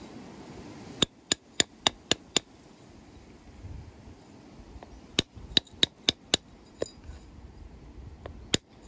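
An antler billet strikes flint with sharp clicks.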